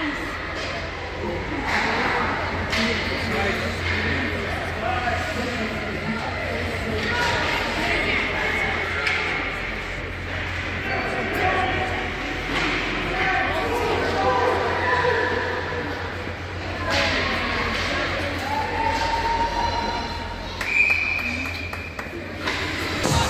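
A crowd of spectators calls out and cheers in a large echoing rink.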